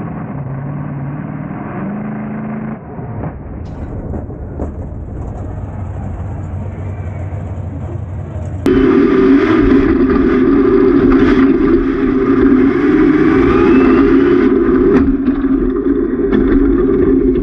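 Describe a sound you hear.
A monster truck engine roars loudly, growing louder partway through.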